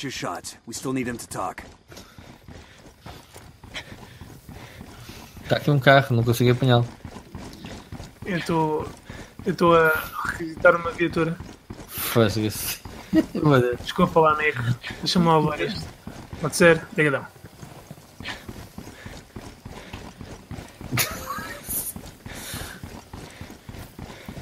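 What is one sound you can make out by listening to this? Footsteps walk on a paved road.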